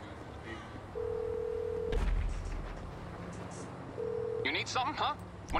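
A phone ring tone sounds twice over a phone line.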